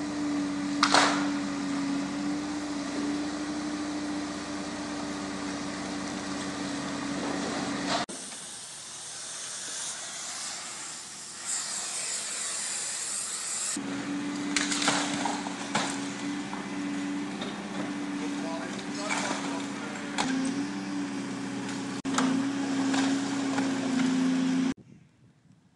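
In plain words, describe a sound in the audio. Bricks and rubble crash down as a demolition grapple tears at a wall.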